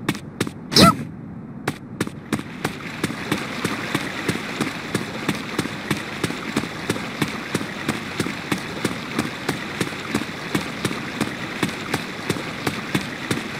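Footsteps tap quickly and evenly on stone pavement.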